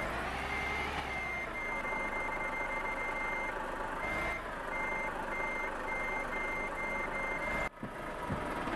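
A truck's reversing alarm beeps in a steady rhythm.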